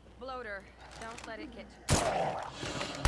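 A single gunshot cracks.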